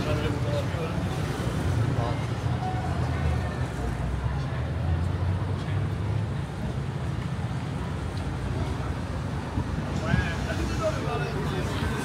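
Men and women chat and call out nearby as they walk past.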